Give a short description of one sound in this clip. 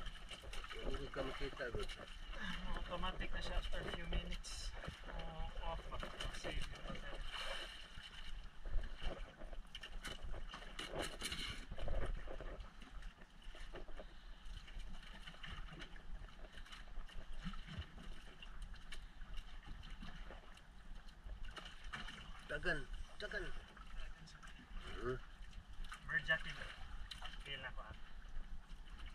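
Small waves splash against a boat.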